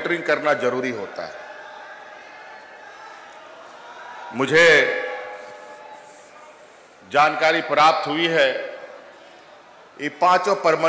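A man speaks through a microphone and loudspeakers, in bursts with pauses, in an echoing outdoor space.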